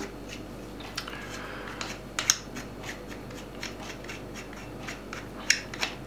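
A knife handle clicks and taps softly as it is turned in the hands.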